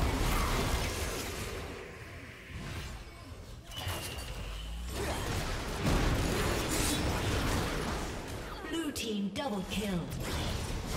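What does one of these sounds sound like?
Magical impacts and blasts ring out during a fight.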